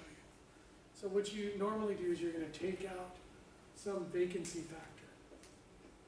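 A middle-aged man speaks calmly and clearly nearby.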